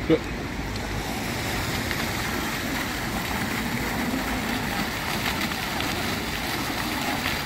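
A fountain jet splashes steadily into a pool.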